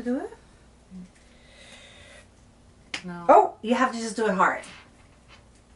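A woman speaks casually up close.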